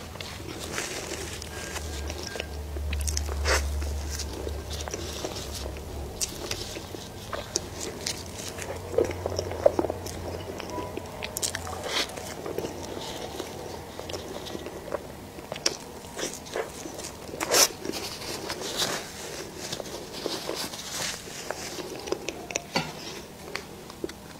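A young woman chews soft cake close to a microphone, with wet smacking sounds.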